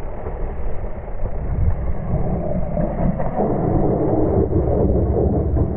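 Wind rushes loudly past close by.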